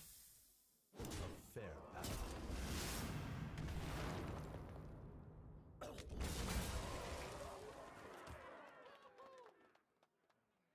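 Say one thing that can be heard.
Explosive crashes and rumbling effects burst from a card game.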